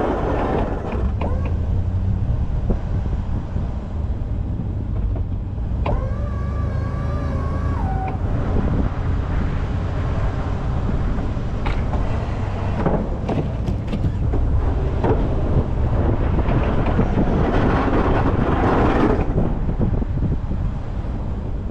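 A vehicle engine rumbles steadily close by.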